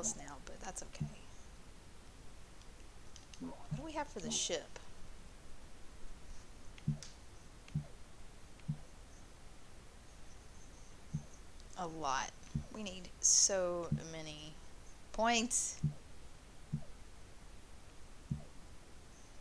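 Short soft clicks tick now and then as a menu selection moves.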